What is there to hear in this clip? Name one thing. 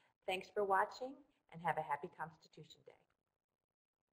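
A middle-aged woman speaks briefly and warmly through a microphone.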